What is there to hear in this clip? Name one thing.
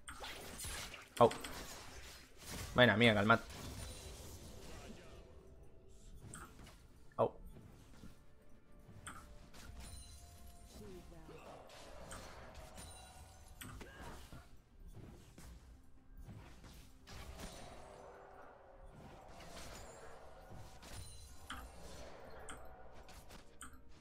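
Game spell effects crackle, zap and clash in a fight.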